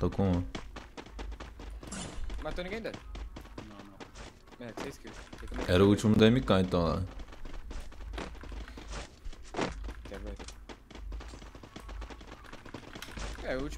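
Footsteps patter quickly through grass.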